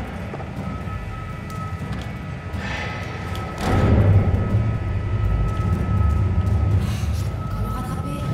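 Footsteps tap on a metal floor.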